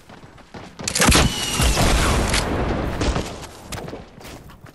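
An explosion booms and crackles close by.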